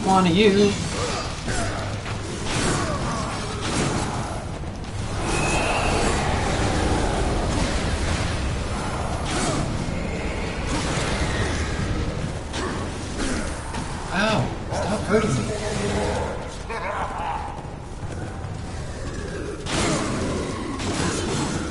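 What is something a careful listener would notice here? Sword strikes clang and thud.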